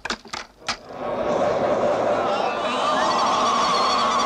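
A crowd cries out and wails.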